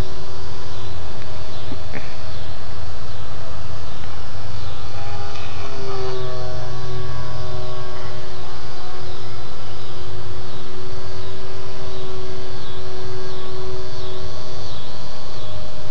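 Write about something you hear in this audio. A small propeller plane drones steadily overhead.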